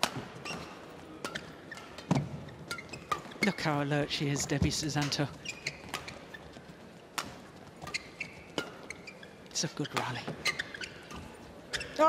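Rackets hit a shuttlecock back and forth in a quick rally.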